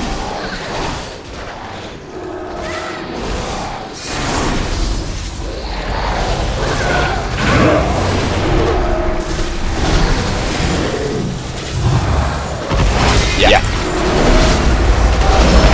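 Magic spells crackle and whoosh in a fight.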